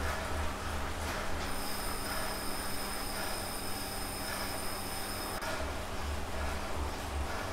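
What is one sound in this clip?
An indoor bike trainer hums steadily.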